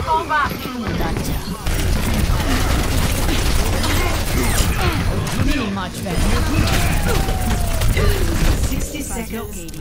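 Gunfire and energy blasts crackle and boom in quick bursts.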